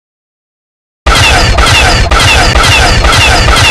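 A toy blaster fires in a fast, loud burst.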